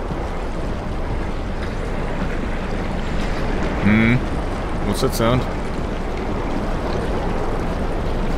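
A strong wind roars and gusts steadily outdoors.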